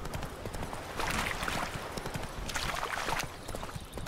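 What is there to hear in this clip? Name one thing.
Water splashes under a galloping horse's hooves.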